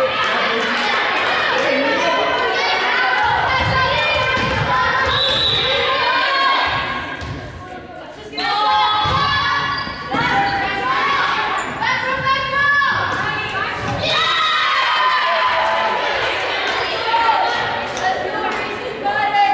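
Young women call out to each other in a large echoing gym.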